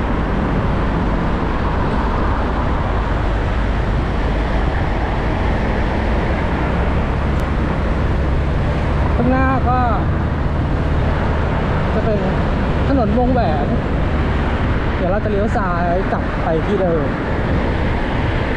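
Wind rushes steadily past a moving motorbike.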